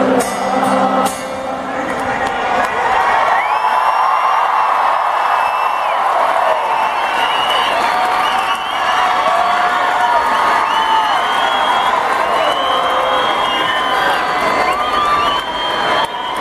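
An electric guitar plays loudly through big loudspeakers.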